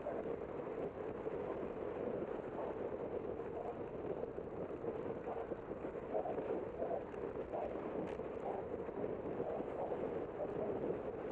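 Wind rushes steadily past outdoors.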